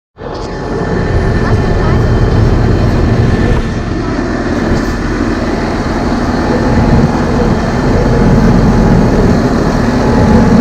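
A tractor engine rumbles close by as the tractor drives slowly past.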